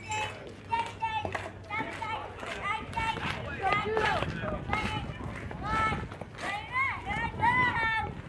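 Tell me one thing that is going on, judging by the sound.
Young children shout and cheer loudly outdoors.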